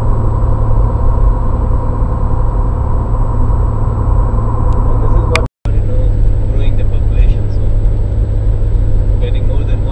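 A car's engine and tyres rumble steadily on a road, heard from inside the car.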